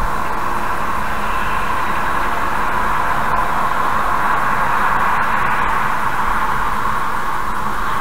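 A large truck roars past close by.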